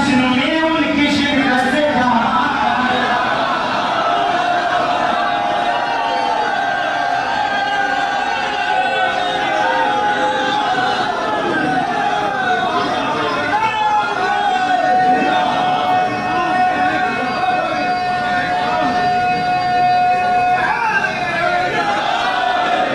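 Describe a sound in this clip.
A young man recites loudly and with feeling through a microphone and loudspeakers.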